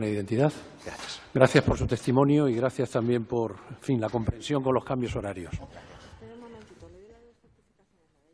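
A man speaks firmly into a microphone in a large echoing hall.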